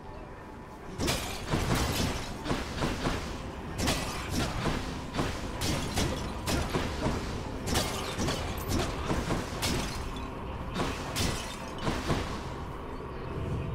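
Blades swish and strike in quick, repeated bursts.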